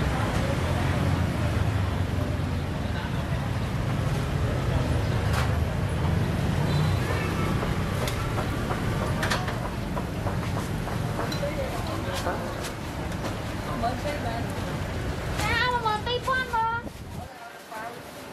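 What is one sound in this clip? Traffic rumbles steadily on a nearby street.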